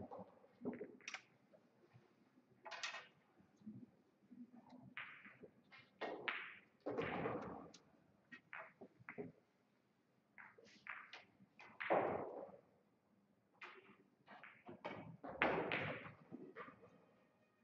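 Billiard balls click and clack together as they are gathered into a rack.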